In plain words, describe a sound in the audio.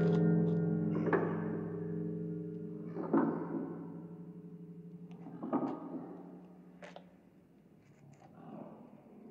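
A pendulum clock ticks.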